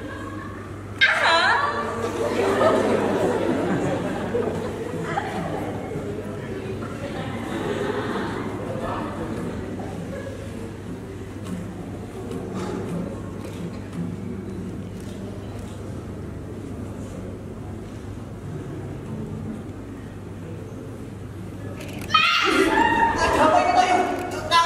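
A woman speaks with animation in an echoing hall.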